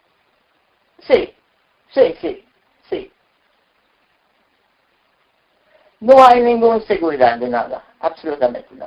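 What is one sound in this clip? An elderly woman speaks calmly and close by, in short bursts with pauses.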